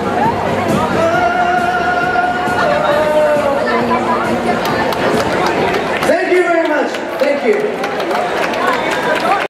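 A young man sings into a microphone over loudspeakers.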